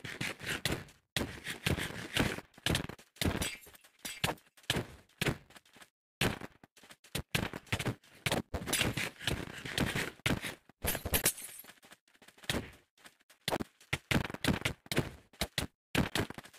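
Sword blows land with quick, sharp thuds.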